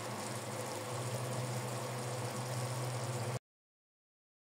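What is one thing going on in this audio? A pot simmers and bubbles on a gas burner.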